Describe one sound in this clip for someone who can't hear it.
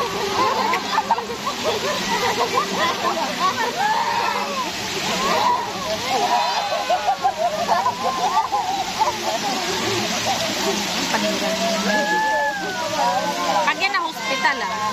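A group of women and children chatter and laugh loudly nearby.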